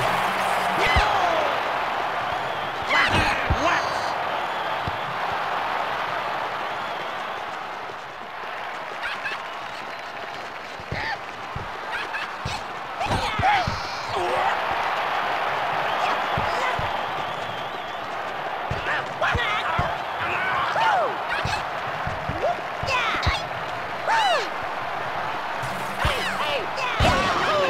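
A crowd cheers steadily throughout.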